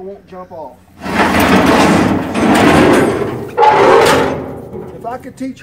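A heavy metal box scrapes and grinds as it is dragged across a metal trailer bed.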